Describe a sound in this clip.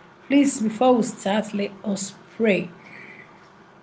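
A woman speaks briefly and calmly, close to a microphone.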